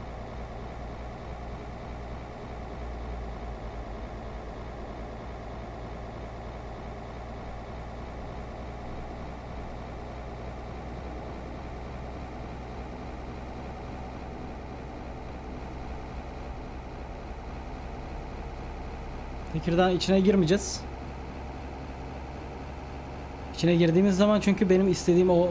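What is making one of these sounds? A bus engine hums steadily.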